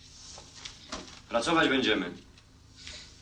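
A man speaks calmly nearby.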